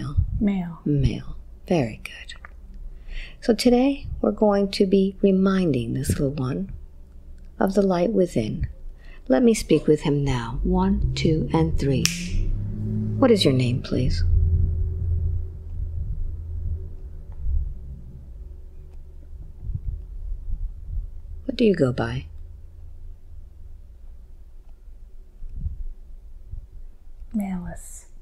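A woman speaks softly and slowly into a close microphone, with long pauses.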